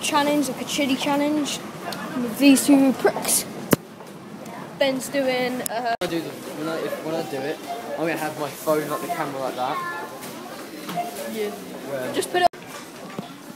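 A boy talks loudly and excitedly close by.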